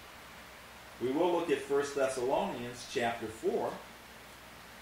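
A middle-aged man reads aloud calmly, close by.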